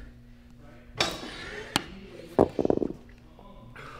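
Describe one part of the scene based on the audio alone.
Dumbbells clank against the floor.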